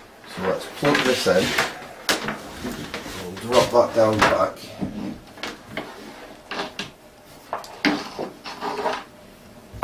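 A cable scrapes and knocks on a wooden surface.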